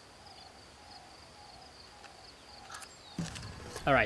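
A stone knocks against a nut.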